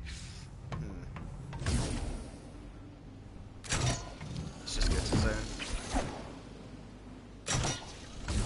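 A hollow ball rolls and thuds as it bounces over bumpy ground.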